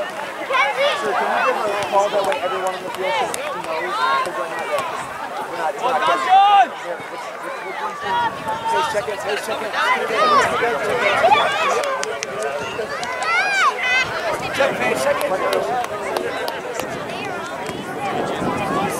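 Spectators chatter and cheer from the sideline.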